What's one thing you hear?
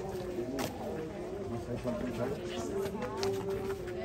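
Footsteps walk on a stone path.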